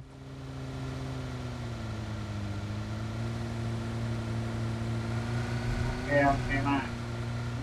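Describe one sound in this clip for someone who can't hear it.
A car engine drones steadily.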